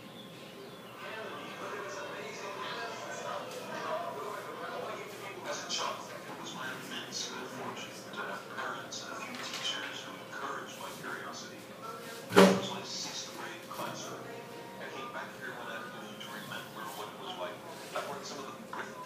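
A man talks with animation to a class, heard through a loudspeaker in a room.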